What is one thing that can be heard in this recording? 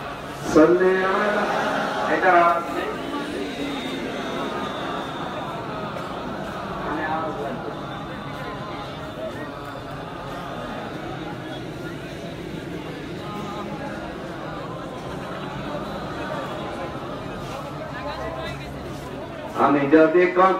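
A man preaches with animation into a microphone over a loudspeaker, his voice echoing in a large hall.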